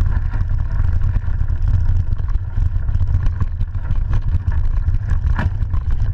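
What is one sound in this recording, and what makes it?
A bike frame rattles and clatters over bumps.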